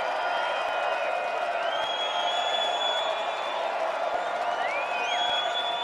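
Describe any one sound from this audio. A large outdoor crowd murmurs and chatters softly.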